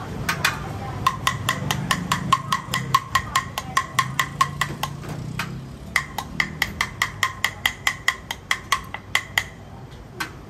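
A metal spoon taps quickly against a ceramic bowl with short ringing clicks.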